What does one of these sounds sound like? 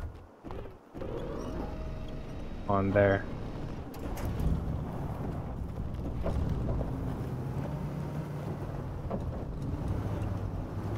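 A truck engine rumbles low and steady, revving at times.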